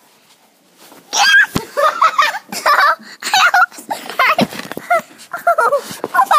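Fabric rustles and rubs close up.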